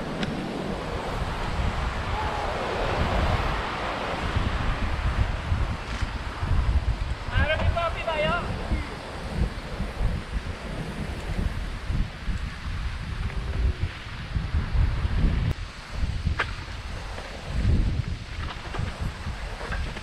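Mountain bike tyres roll and crunch over a dirt trail.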